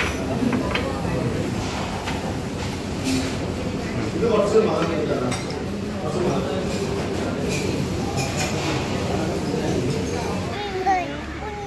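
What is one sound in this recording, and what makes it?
Several adults chatter nearby in a busy, noisy room.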